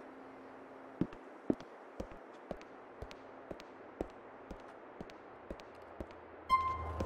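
Footsteps tap on a hard floor at a steady pace.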